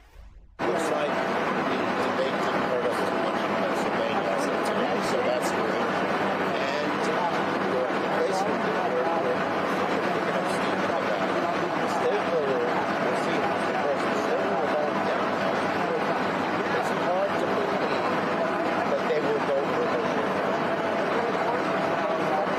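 An elderly man answers softly in a low voice.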